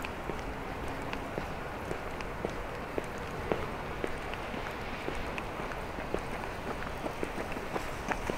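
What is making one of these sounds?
Footsteps tap steadily on a paved path.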